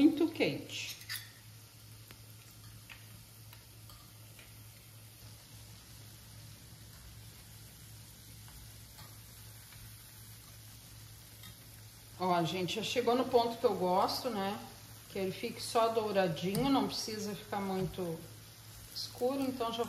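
Hot oil sizzles and bubbles steadily in a frying pan.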